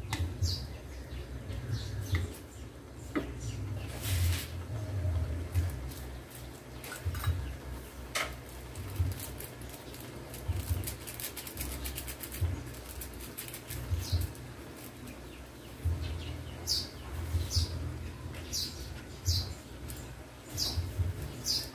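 A wooden spatula scrapes and tosses food in a pan.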